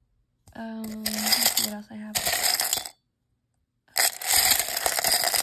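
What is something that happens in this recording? Plastic buttons rattle and clatter as a hand rummages through them in a metal tin.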